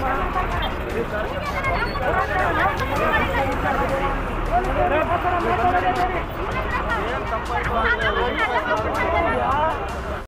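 Several men argue loudly nearby, talking over one another.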